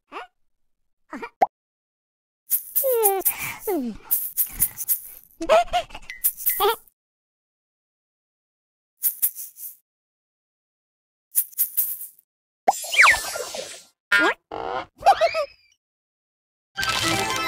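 Cartoon sound effects chime and twinkle in short bursts.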